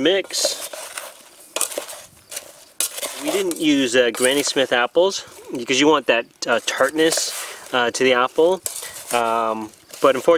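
A spoon scrapes and stirs food in a metal pot.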